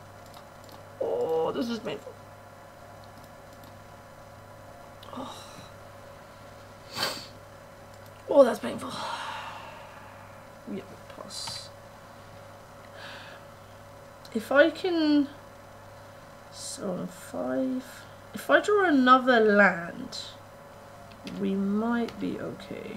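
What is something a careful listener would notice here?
A young woman talks casually into a microphone, close by, in short bursts.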